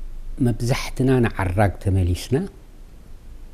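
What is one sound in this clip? A man speaks calmly into a microphone close by.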